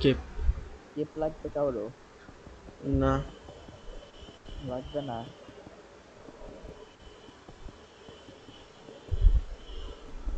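Stone blocks are set down one after another with soft thuds.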